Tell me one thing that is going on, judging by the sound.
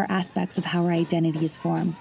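An elderly woman speaks calmly, close by.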